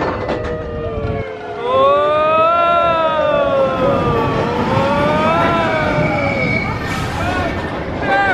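A roller coaster train rumbles along its track.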